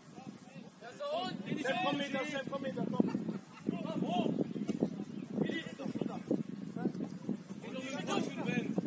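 Young men shout to each other across an open playing field.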